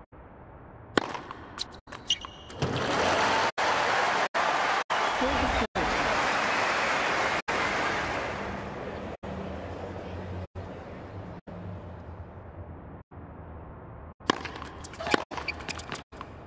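A tennis ball is struck sharply by a racket, back and forth.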